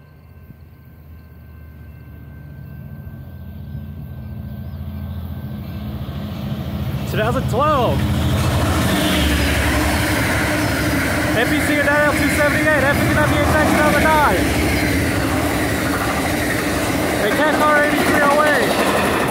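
A train rumbles closer and roars past at close range.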